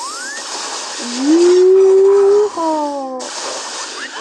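A lightsaber hums loudly, then sweeps down in pitch.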